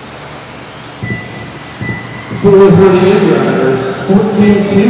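Small electric motors whine loudly as toy race cars speed around a track.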